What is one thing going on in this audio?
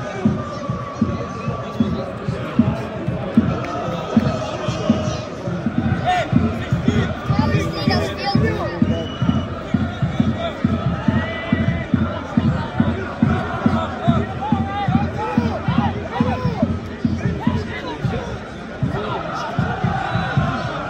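A large stadium crowd chants and sings loudly in unison outdoors.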